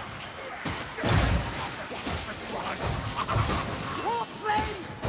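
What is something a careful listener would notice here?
A fiery explosion bursts with a deep boom.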